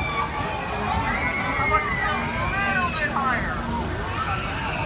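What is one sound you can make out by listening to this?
Riders scream on a swinging ride.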